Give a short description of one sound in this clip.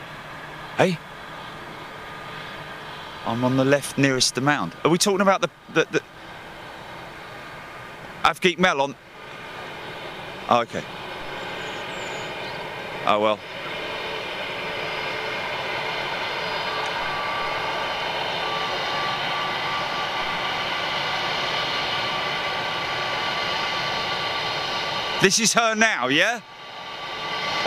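A jet engine whines steadily as an airliner taxis, growing louder as it comes closer.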